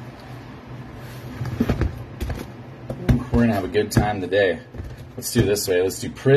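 Cardboard boxes are slid and set down on a table with soft knocks.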